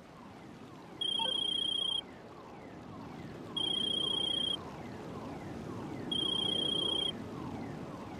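A phone rings with repeated electronic beeps.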